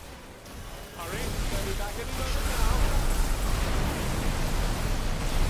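Magic spells crackle and roar in loud bursts.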